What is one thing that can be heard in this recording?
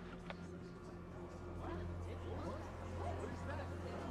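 A woman asks a short question in surprise.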